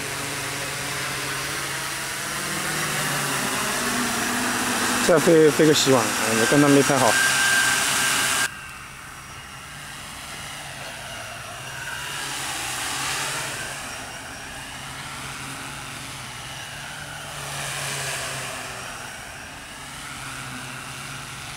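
A small drone's propellers buzz as it flies overhead, rising and falling in pitch as it passes.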